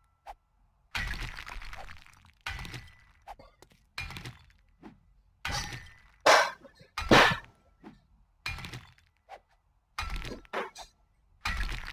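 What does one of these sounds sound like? A pickaxe strikes stone again and again with heavy, crunching blows.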